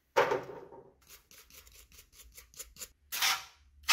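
A stiff brush scrubs a metal part with quick scratching strokes.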